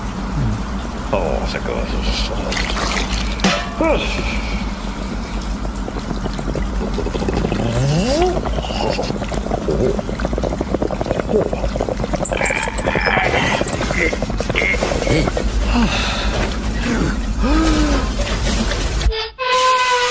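A man mumbles and grunts in a silly, wordless voice.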